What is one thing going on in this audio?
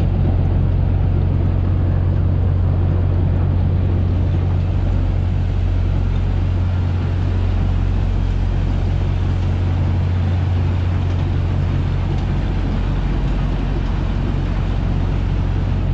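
A jet ski engine rumbles steadily up close.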